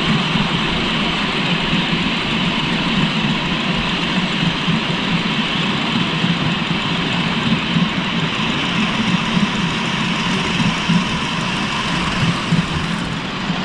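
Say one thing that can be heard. A miniature steam locomotive chuffs steadily along close by.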